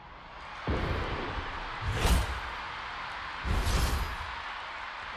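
Fireworks burst with loud booms.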